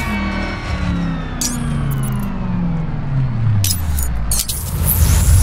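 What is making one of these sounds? A car engine hums and winds down as the car slows.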